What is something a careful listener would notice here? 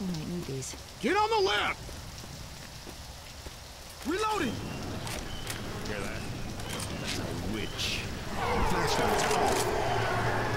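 A fire crackles in a metal barrel.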